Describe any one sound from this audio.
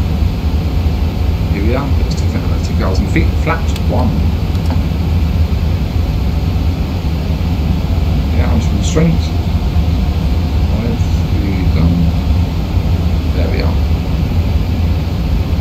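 Jet engines drone with a steady low rumble.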